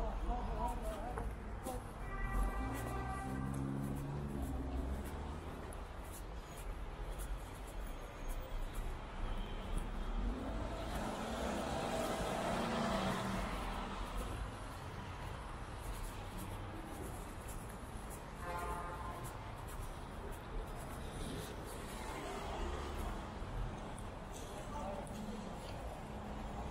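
Footsteps tap on a wet pavement.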